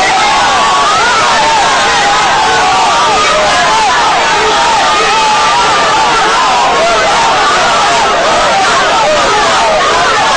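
A crowd cheers and shouts with excitement.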